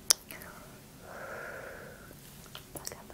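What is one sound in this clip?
A young woman blows a kiss.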